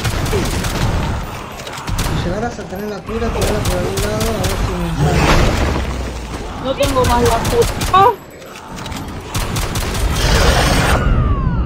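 A pistol fires repeated gunshots.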